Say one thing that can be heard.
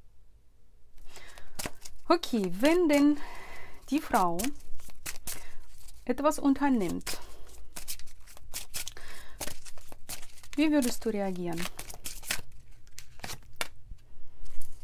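Playing cards riffle and slap together as they are shuffled close by.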